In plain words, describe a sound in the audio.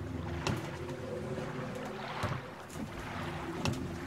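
A person steps down into a wooden rowing boat with a heavy thud.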